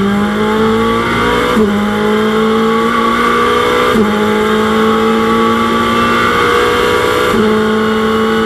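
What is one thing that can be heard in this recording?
A race car engine climbs in pitch and drops sharply with each gear shift.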